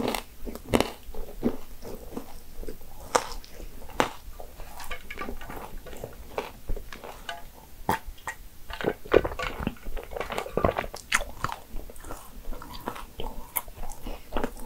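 A young woman chews food with soft, wet sounds close to a microphone.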